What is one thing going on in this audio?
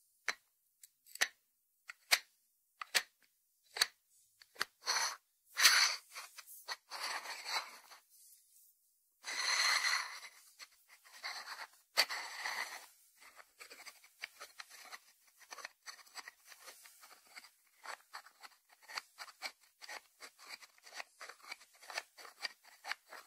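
Fingertips tap on a small ceramic dish and its lid.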